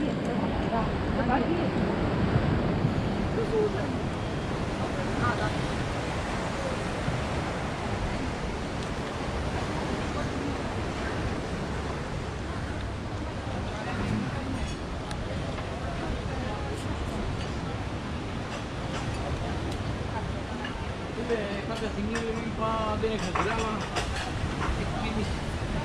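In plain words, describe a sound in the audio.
A crowd of people chatters and murmurs nearby outdoors.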